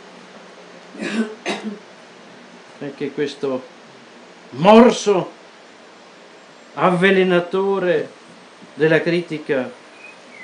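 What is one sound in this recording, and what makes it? An elderly man reads out slowly in a chanting voice.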